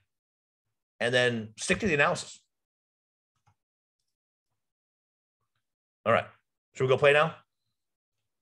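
A man speaks calmly into a microphone over an online call, in short bursts with pauses.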